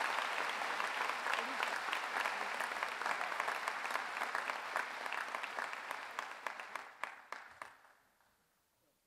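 An audience applauds in a large hall, then the clapping fades out.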